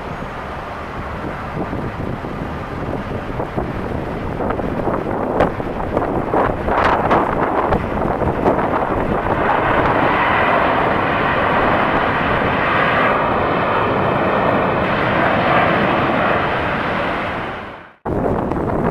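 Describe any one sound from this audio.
A jet airliner's engines roar loudly as it touches down and races along a runway.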